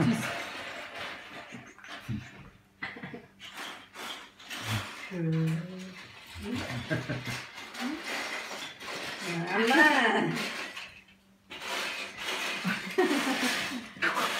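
A woman laughs softly nearby.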